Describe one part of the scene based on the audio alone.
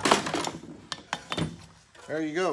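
A rigid plastic part knocks and rattles as it is handled.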